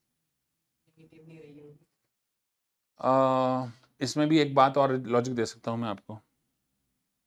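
A man explains in a lively lecturing tone, close by.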